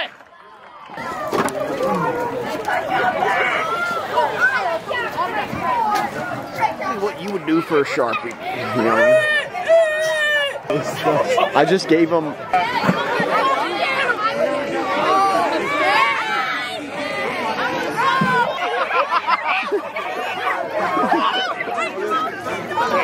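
A crowd of children chatter and shout excitedly nearby.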